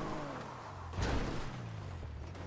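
A car bumps hard with a loud thud.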